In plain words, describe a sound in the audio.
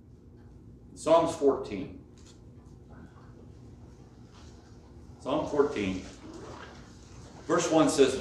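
A middle-aged man speaks calmly, with pauses.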